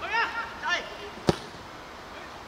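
A foot kicks a ball with a sharp thud.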